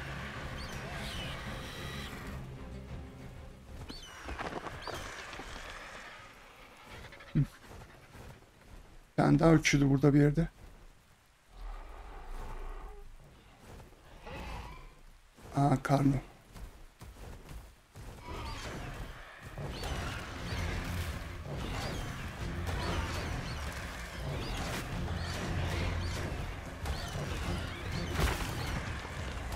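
Large wings flap steadily.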